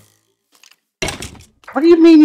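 A blade strikes a rattling skeleton with a thud.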